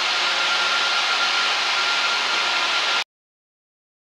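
A floor grinding machine whirs and hisses steadily over a concrete floor.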